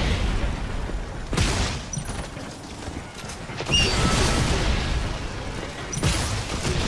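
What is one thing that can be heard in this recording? Game effects whoosh and chime.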